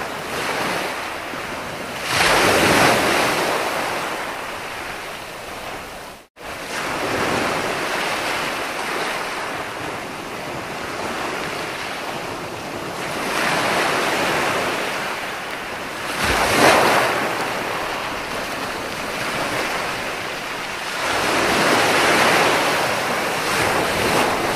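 Ocean waves crash and wash up on a shore in surges.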